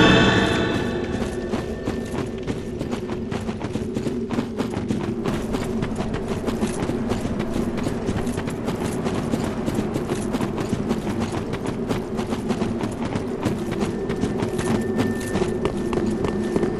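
Armoured footsteps clatter quickly on stone.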